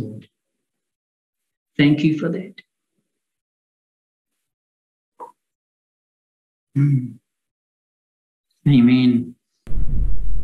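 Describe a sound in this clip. A middle-aged man speaks calmly and slowly into a close microphone, with long pauses.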